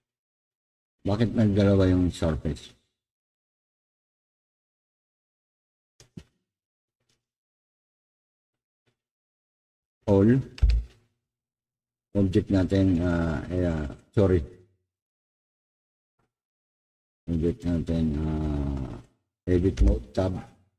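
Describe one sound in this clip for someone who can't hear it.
A man speaks calmly near a microphone in short bursts.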